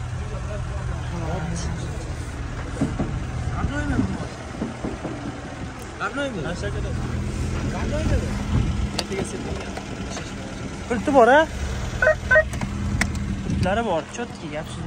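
Several men talk nearby outdoors.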